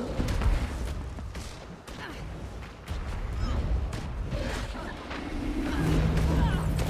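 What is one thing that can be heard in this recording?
Sword blows strike with sharp whooshes and impacts.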